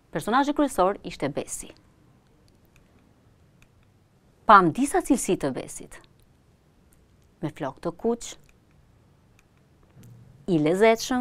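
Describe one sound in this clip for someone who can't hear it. A woman speaks clearly and calmly into a microphone, in short phrases with pauses.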